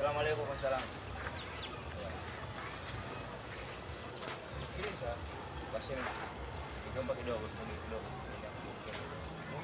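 A man talks quietly nearby outdoors.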